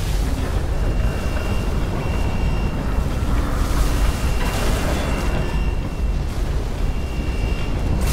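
An energy sword hums steadily.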